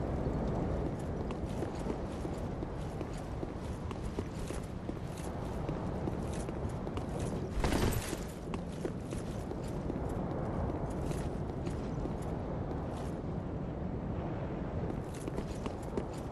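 Armored footsteps clatter quickly on stone.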